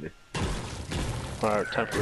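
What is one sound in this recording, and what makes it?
A pickaxe strikes a wall with a hard knock.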